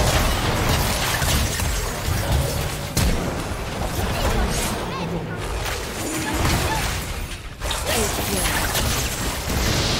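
Game characters clash with sharp hits.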